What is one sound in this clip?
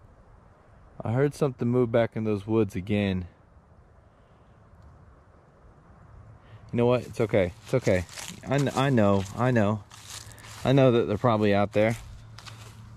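A man speaks calmly close by.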